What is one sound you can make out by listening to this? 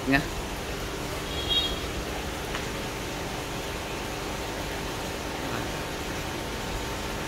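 Water splashes steadily into an aquarium from an outlet pipe.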